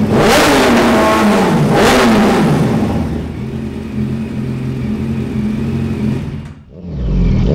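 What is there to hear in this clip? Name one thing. A motorcycle engine revs sharply twice and then idles steadily.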